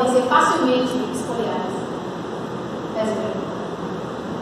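A young woman speaks calmly in an echoing room.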